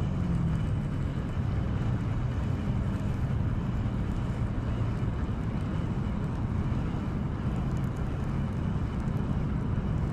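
A fishing reel's handle is cranked, winding in line with a soft whirring.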